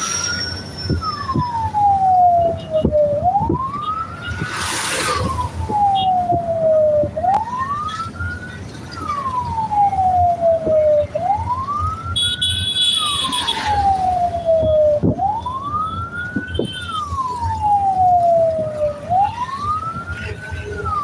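Motorcycle engines hum close by on a road.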